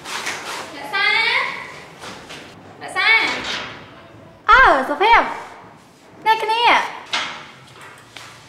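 A young woman sings loudly with animation, close by.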